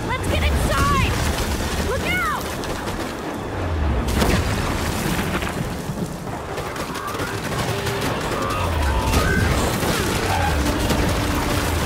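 Heavy boots crunch through snow at a run.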